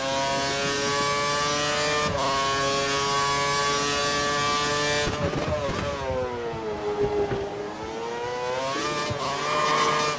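A racing car engine whines at high revs, dropping in pitch as it slows for a corner and rising again.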